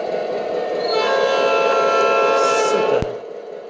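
A model locomotive's horn blares.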